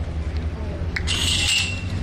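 A starting gate snaps open with a sharp clack.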